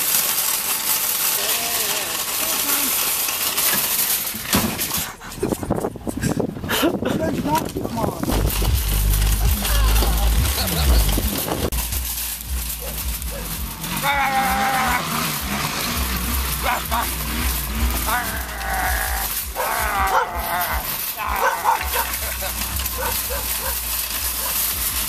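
A wire shopping cart rattles as it rolls over gravel.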